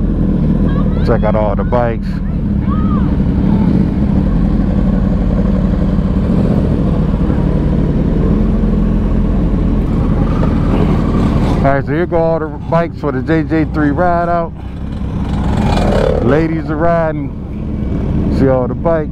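Nearby motorcycles rev their engines loudly in sharp bursts.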